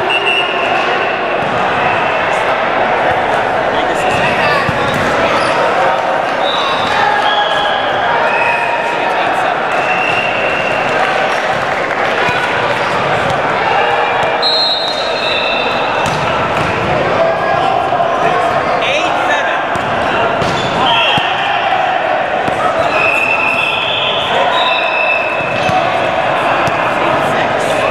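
Men's voices call and chatter across a large echoing hall.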